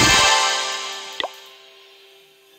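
Triumphant game fanfare music plays and fades.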